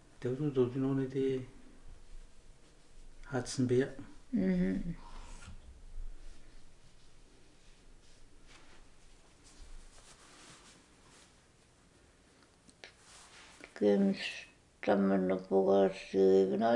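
An elderly woman speaks slowly and softly nearby, with long pauses.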